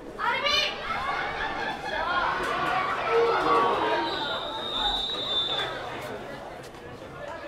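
A distant crowd cheers and murmurs outdoors.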